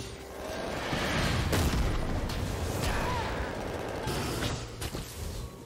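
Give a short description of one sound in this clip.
Video game spell effects burst and crackle during a fight.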